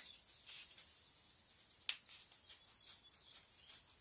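Scissors snip fabric.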